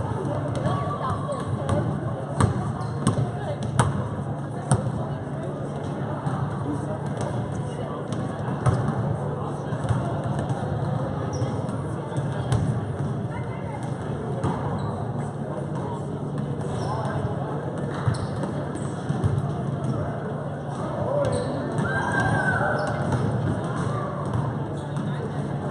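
Many people chatter at a distance in a large echoing hall.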